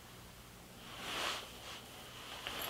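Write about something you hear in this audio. Fingers rustle through short hair.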